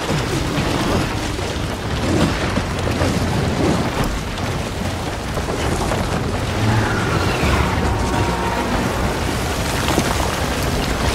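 Heavy rain pours down steadily outdoors.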